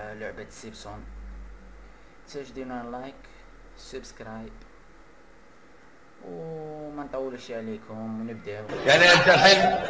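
A young man talks casually into a microphone close by.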